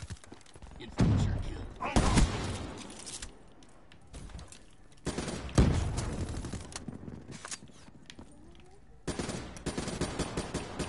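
Rapid gunshots crack out in short bursts.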